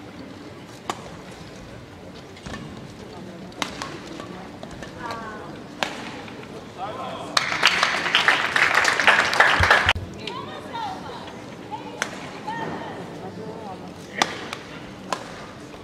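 Rackets strike a shuttlecock back and forth in sharp pops.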